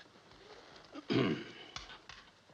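A man speaks briefly in a low voice.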